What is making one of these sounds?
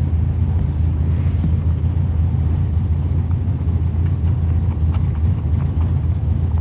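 A race car engine idles with a deep, loud, uneven rumble close by.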